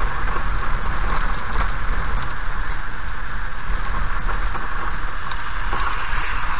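A car's tyres rumble steadily over a gravel road.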